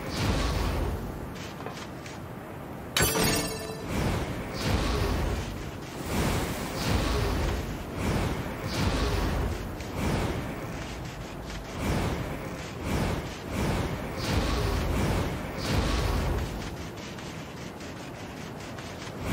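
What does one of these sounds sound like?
Wind howls steadily across open sand.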